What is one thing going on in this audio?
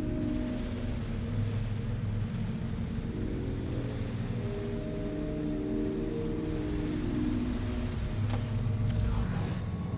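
A small drone hums steadily as it hovers.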